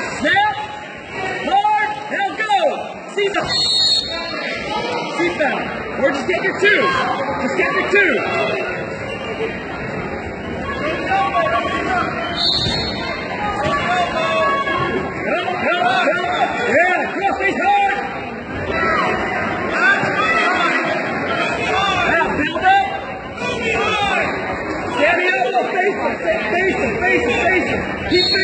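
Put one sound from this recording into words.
Young wrestlers thump and scuffle on a mat.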